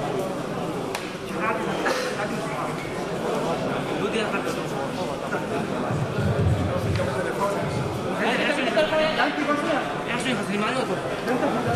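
A crowd of men murmurs and talks in a large echoing hall.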